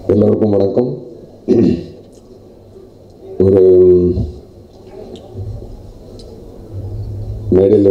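A middle-aged man speaks into a microphone with feeling, in bursts with pauses, his voice carried over loudspeakers.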